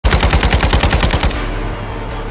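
An automatic rifle fires a rapid burst.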